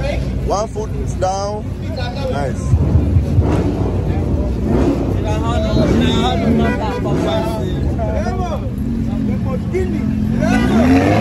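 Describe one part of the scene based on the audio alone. A sports car engine revs loudly nearby.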